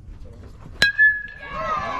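A metal bat cracks against a baseball.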